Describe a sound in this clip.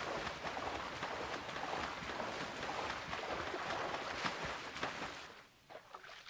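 Water splashes and laps as a swimmer paddles through it.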